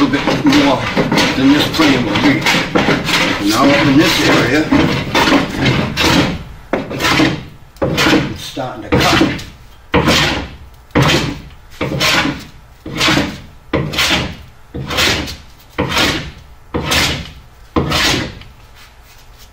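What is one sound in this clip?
A hand plane shaves wood in quick, repeated strokes.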